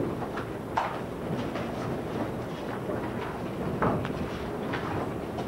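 Papers rustle and pages turn.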